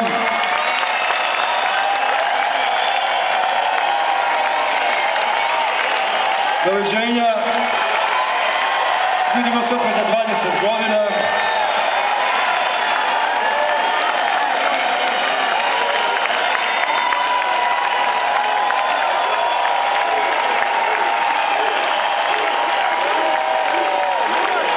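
A band plays music loudly through loudspeakers.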